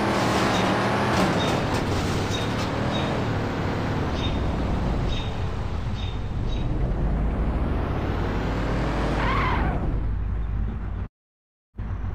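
A car engine hums and revs steadily.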